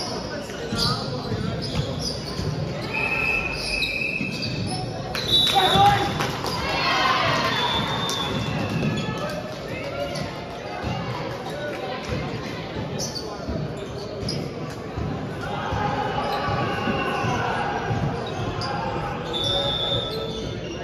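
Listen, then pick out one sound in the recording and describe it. Young men call out and chatter in a large echoing hall.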